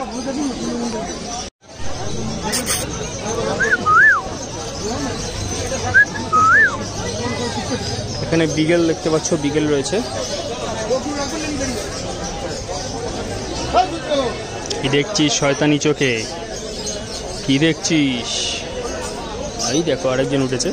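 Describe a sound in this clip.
A crowd of men and women chatters nearby, outdoors.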